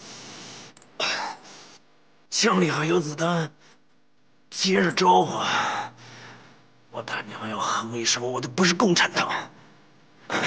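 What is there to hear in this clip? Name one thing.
A man speaks hoarsely and intensely, close by.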